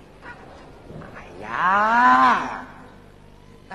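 A woman sings a drawn-out, wavering operatic phrase on stage.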